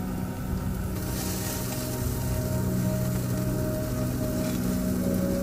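Steaks sizzle and hiss on a hot grill.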